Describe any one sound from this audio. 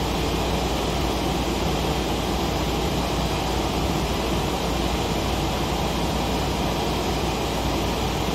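Jet engines roar in a steady, loud drone.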